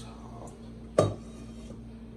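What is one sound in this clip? A metal bowl clinks against a counter.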